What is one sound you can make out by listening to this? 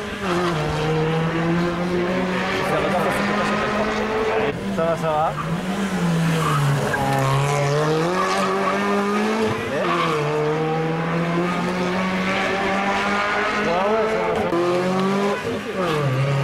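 A rally car engine roars loudly, revving up and down as it races past.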